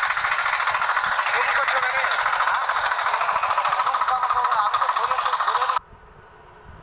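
A tractor engine chugs loudly close by, then cuts out.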